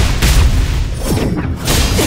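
A blade swings with a sharp swish.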